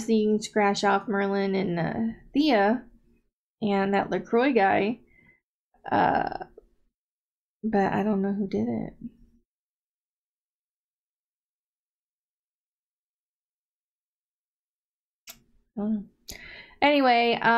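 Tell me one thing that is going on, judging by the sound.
A woman talks calmly and close up, with pauses.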